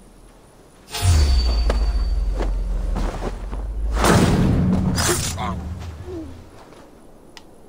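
A heavy scuffle thuds and scrapes close by.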